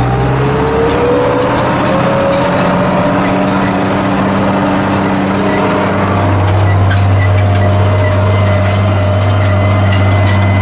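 A tractor engine drones steadily up close.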